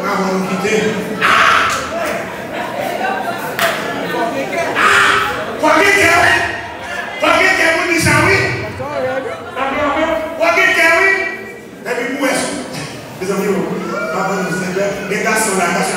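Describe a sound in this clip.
A man preaches forcefully into a microphone, heard through loudspeakers in an echoing hall.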